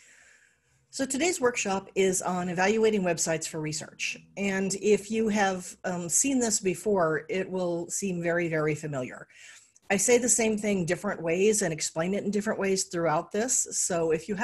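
A middle-aged woman speaks calmly over an online call.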